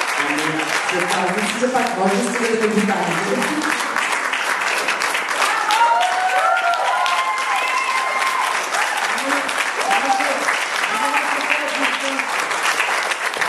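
An elderly woman speaks into a microphone, heard through loudspeakers in an echoing hall.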